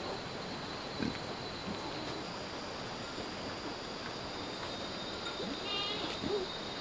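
Pigs grunt nearby.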